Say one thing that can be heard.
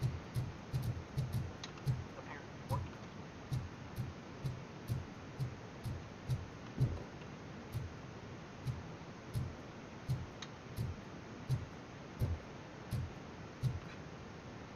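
Footsteps tread steadily across a floor.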